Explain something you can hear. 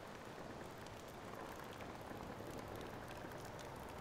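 A fire crackles and burns.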